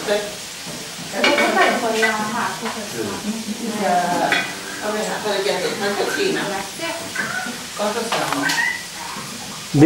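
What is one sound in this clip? Women talk casually nearby.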